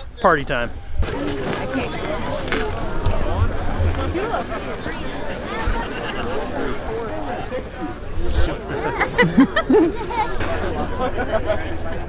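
A large crowd chatters outdoors.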